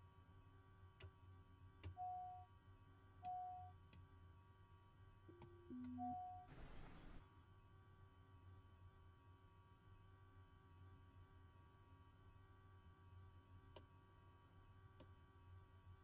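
Cockpit switches click sharply now and then.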